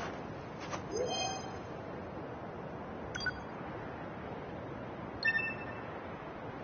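A soft electronic chime sounds.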